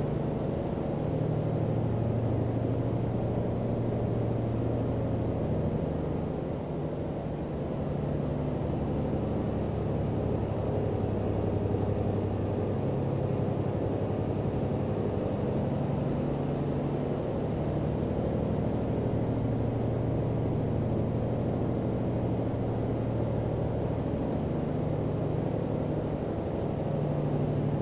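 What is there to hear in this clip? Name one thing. A truck's diesel engine rumbles steadily, its pitch rising and falling a little.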